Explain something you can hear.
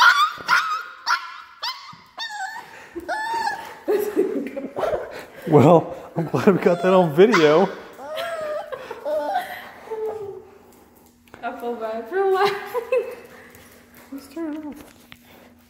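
Dogs whine and howl close by.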